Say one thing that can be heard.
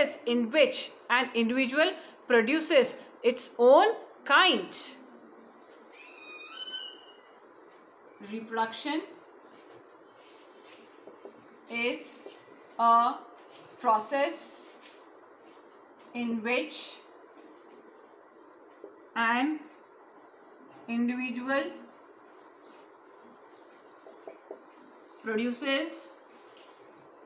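A woman speaks calmly and clearly close by, in short phrases with pauses.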